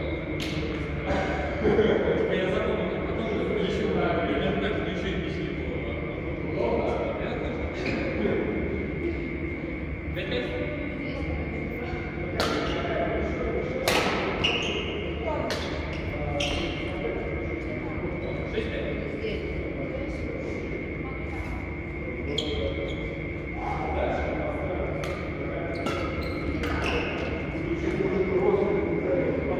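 Badminton rackets hit a shuttlecock with sharp pops in a large echoing hall.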